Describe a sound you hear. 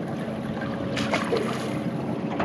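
Water splashes as a knife is rinsed.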